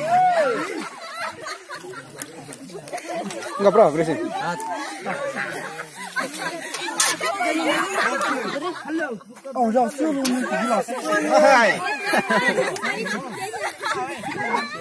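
Several young men and boys talk and laugh together close by, outdoors.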